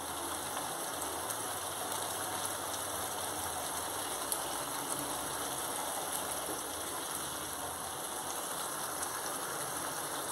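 A spatula scrapes and stirs in a pan.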